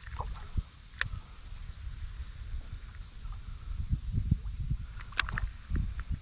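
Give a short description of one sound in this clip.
A fishing reel clicks sharply.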